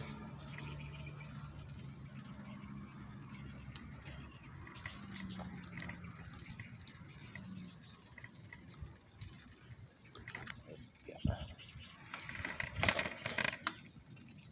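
Bicycle tyres roll on smooth asphalt.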